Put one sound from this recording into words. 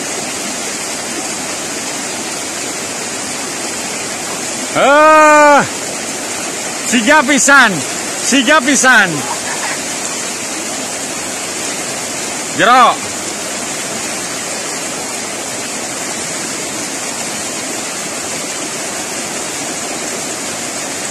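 Fast river water rushes and splashes steadily over rapids.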